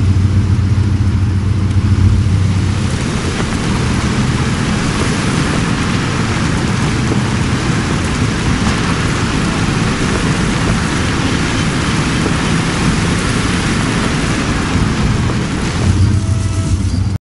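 Tyres crunch and rattle over a dirt track.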